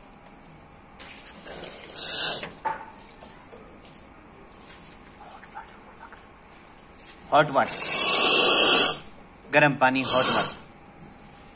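Steam hisses loudly from a coffee machine in short bursts.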